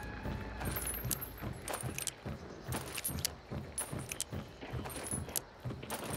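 Metal clicks and rattles as a gun is reloaded.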